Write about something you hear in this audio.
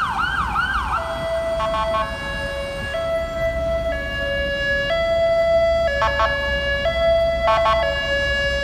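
A fire truck's horn blares in long, repeated blasts.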